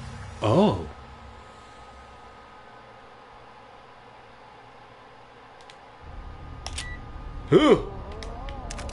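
A man makes short vocal sounds close to a microphone.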